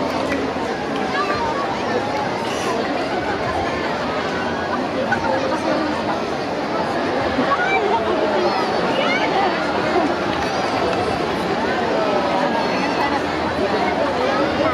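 A large outdoor crowd chatters and cheers loudly all around.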